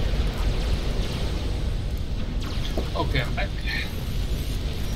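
Laser weapons zap and crackle in a battle.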